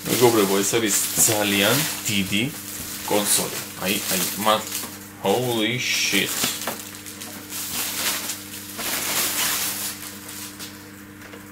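A plastic bag rustles and crinkles as it is pulled off.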